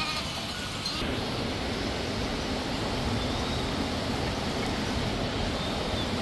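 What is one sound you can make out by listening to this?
A river rushes over stones.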